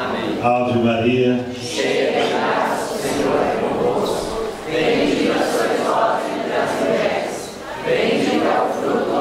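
A crowd of men and women sings together in an echoing hall.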